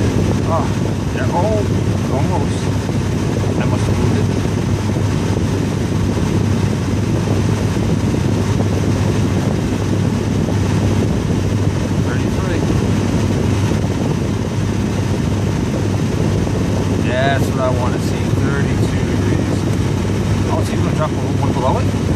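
Air blows steadily from a car's vent with a low hum.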